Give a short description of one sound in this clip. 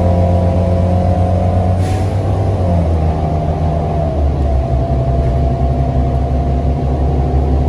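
A bus rattles and creaks over the road.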